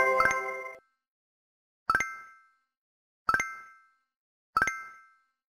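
A game plays short, bright chiming notes, one after another.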